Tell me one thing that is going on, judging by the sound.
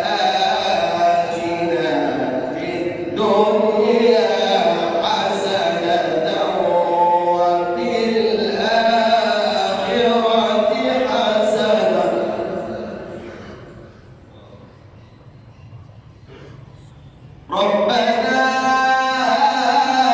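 A man chants a long melodic recitation through a microphone, with echo.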